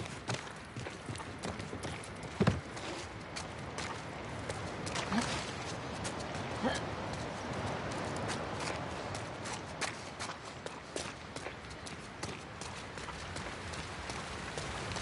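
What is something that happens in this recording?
Footsteps crunch and scuff on a hard floor.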